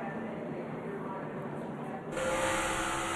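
Race car engines roar past on a track.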